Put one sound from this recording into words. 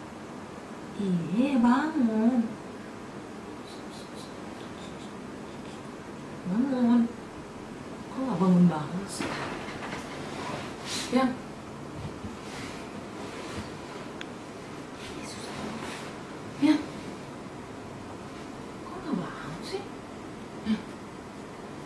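A young woman speaks softly and playfully close by.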